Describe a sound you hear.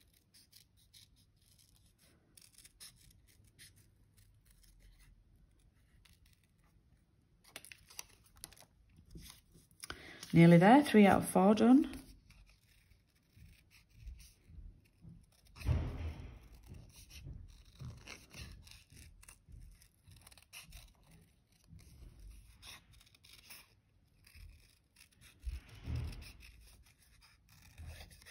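Small scissors snip through thin card.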